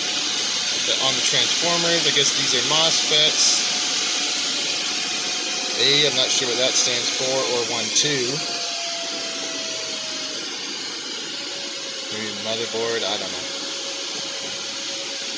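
A cooling fan whirs steadily.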